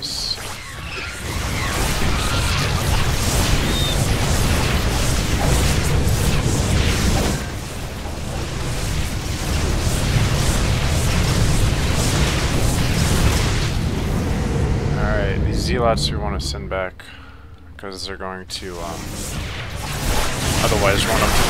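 Laser weapons zap and hum rapidly in a loud battle.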